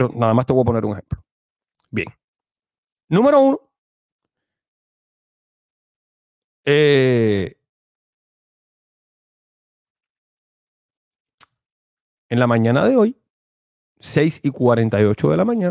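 A young man speaks into a close microphone in short bursts, with long pauses.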